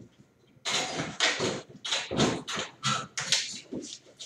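A wire crate door rattles open.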